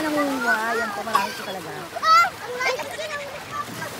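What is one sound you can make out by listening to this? Small waves splash gently onto rocks.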